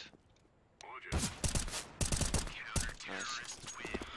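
Gunshots crack in quick bursts from a video game.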